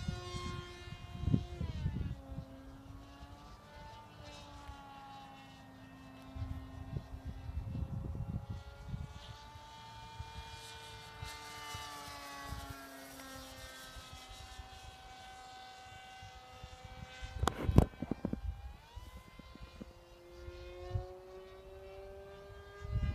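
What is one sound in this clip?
A small aircraft engine drones overhead, its pitch slowly rising and falling.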